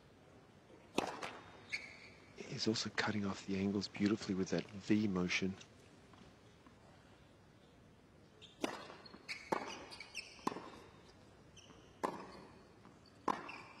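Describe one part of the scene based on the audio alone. A tennis ball is struck back and forth with sharp racket pops.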